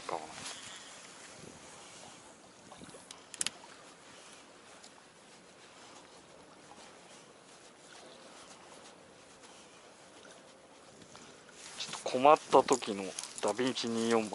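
Water laps softly against the side of a boat.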